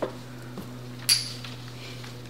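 Glasses clink together in a toast.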